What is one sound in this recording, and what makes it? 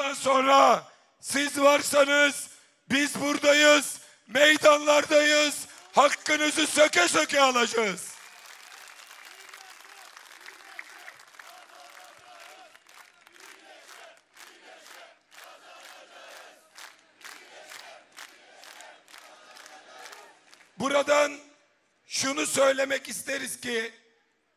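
A man shouts with passion through a microphone and loudspeakers.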